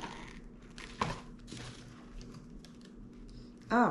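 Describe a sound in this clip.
A cardboard box rustles as a woman handles it.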